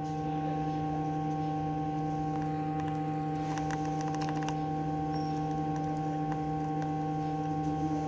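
A soldering iron sizzles faintly against solder.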